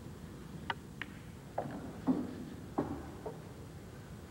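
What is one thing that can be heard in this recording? Billiard balls knock together and roll across the table.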